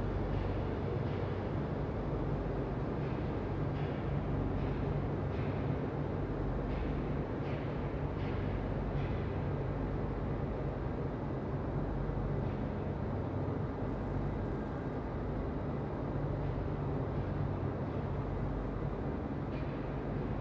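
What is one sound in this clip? Machinery hums steadily and loudly.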